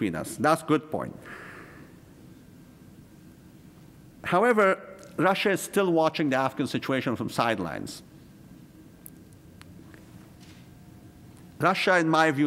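A middle-aged man speaks into a microphone in a calm, measured lecture voice, with pauses.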